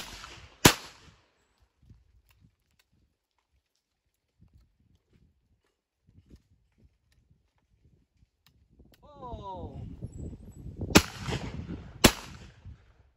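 A shotgun fires loud, sharp blasts outdoors.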